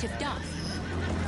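Horses gallop over the ground.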